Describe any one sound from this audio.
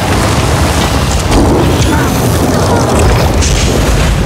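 Crackling lightning magic zaps and sizzles.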